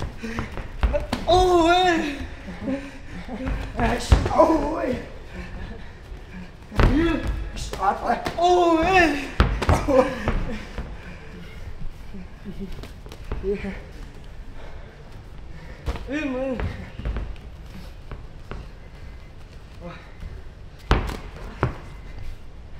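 Gloves and shins thud against pads and arms.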